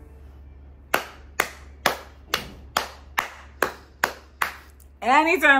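A young woman claps her hands in a steady beat.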